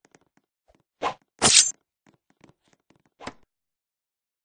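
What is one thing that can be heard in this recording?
A knife slashes with a sharp swish.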